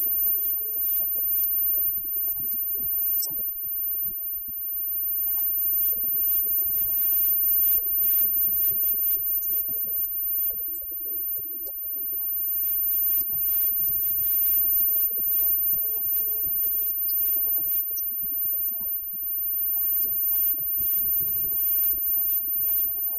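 Electric guitars strum and ring out.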